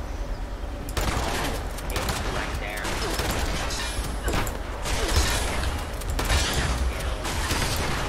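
Laser gunfire zaps and crackles in rapid bursts.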